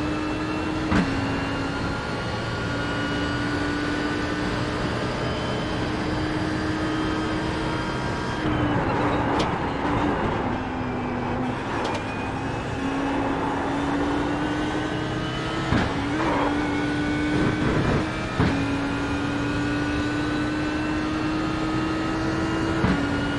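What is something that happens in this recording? A racing car's engine briefly dips in pitch as each gear shifts up.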